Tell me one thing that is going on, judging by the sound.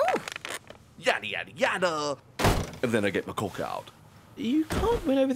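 A man talks and laughs with animation.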